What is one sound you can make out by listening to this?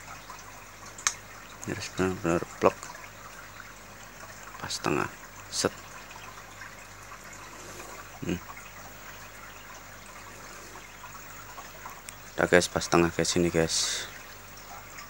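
A metal pin clicks and scrapes against a phone's back.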